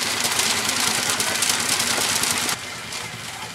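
An engine chugs loudly.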